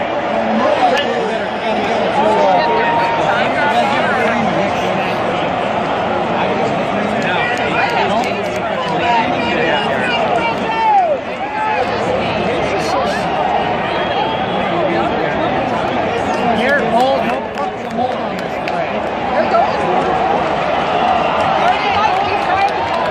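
Nearby fans shout and whoop with excitement.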